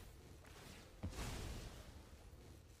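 A deep game thud booms as a card lands.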